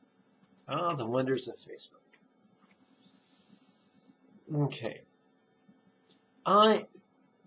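A middle-aged man speaks calmly and expressively into a close microphone, in short bursts with pauses.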